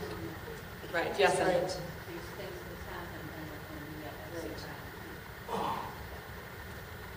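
A woman talks calmly into a microphone heard over loudspeakers.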